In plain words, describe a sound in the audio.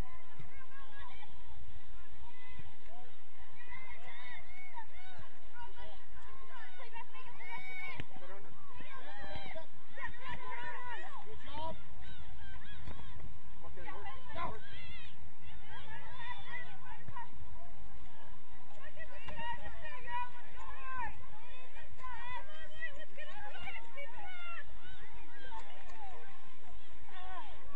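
Teenage girls shout and call to each other across an open field.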